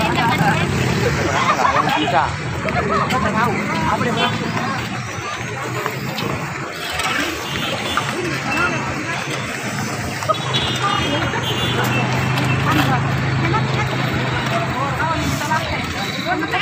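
A crowd of men and women talk and call out nearby, outdoors.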